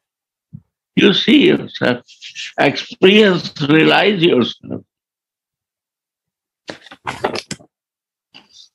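An elderly man speaks calmly and with feeling through a microphone, in short bursts with pauses.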